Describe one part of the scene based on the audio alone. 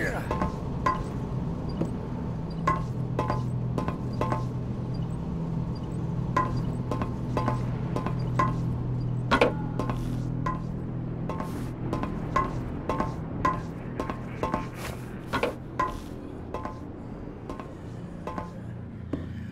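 Footsteps clatter at a steady pace across a metal roof.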